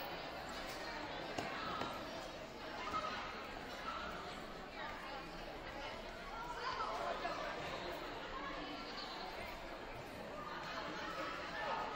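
Children shout and squeal while running around.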